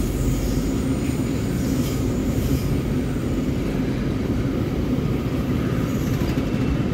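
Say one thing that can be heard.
A long freight train rumbles and clatters steadily past on the rails nearby.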